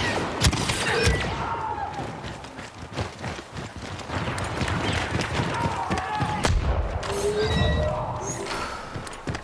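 Blaster shots fire in rapid bursts.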